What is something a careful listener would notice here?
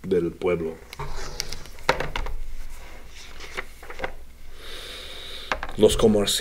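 Book pages rustle as they are turned.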